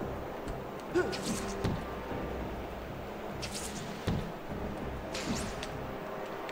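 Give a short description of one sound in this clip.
Air whooshes in short bursts as a figure swings and leaps.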